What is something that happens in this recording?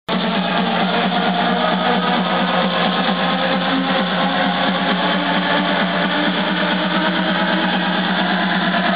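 Loud electronic dance music with a fast, pounding beat plays over big loudspeakers.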